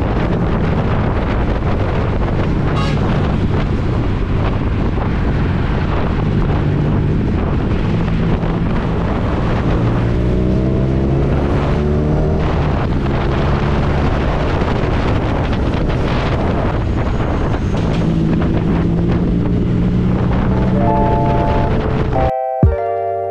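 A motorcycle engine hums steadily and rises and falls in pitch as it rides.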